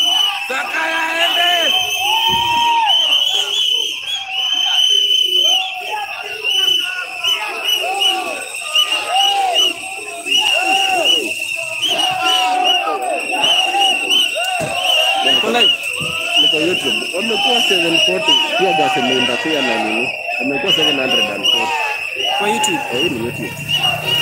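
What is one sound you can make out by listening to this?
A crowd of men and women chants and sings loudly outdoors.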